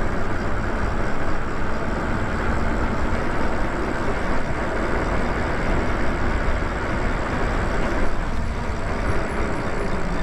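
Tyres hum on pavement.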